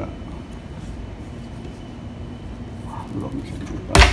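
A metal latch on a cabinet door clicks.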